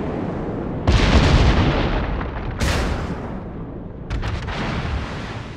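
Heavy naval guns fire with loud booming blasts.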